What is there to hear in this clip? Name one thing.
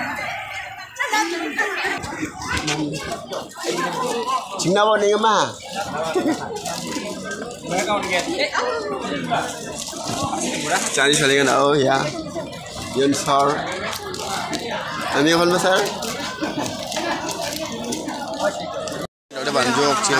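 A crowd of children chatters in the background.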